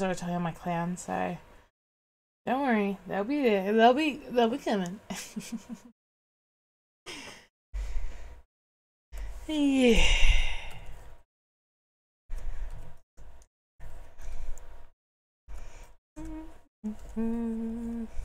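A young woman speaks and sings playfully into a close microphone.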